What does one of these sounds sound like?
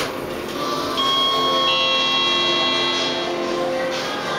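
An elevator chime rings with a steady tone.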